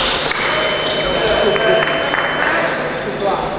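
A man calls out loudly in a large echoing hall.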